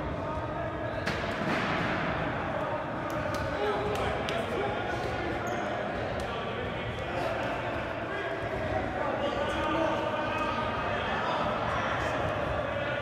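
Men call out to each other in a large echoing gym.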